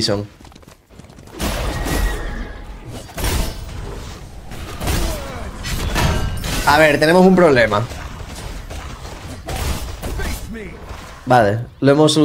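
Game spells and hits crackle and thump.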